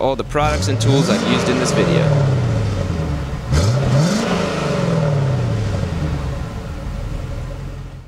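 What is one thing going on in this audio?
An engine revs up loudly and winds back down, twice.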